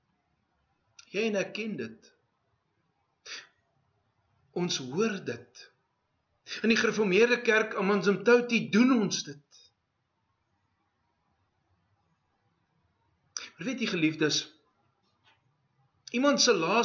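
A middle-aged man speaks with animation close by, pausing between phrases.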